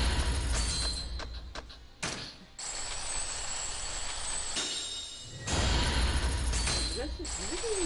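Game menu music plays steadily.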